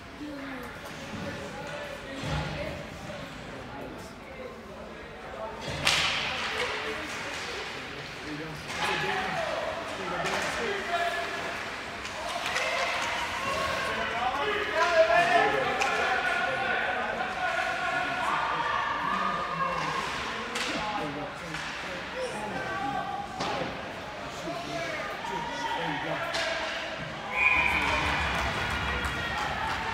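Hockey sticks click against a puck.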